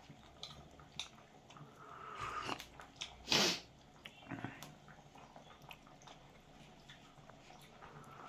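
A man slurps a hot drink up close.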